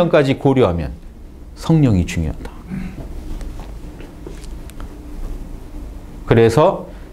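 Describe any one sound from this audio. A middle-aged man lectures with animation through a clip-on microphone, in short bursts with pauses.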